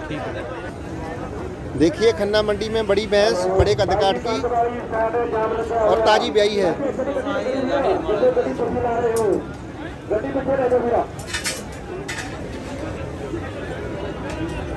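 A crowd murmurs outdoors in the background.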